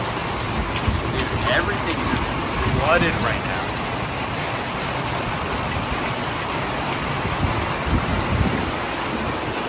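Steady rain falls outdoors, splashing on wet paving.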